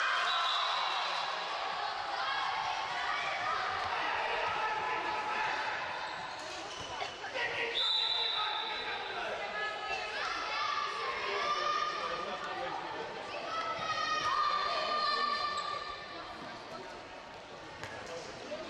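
Young women shout to each other in a large echoing hall.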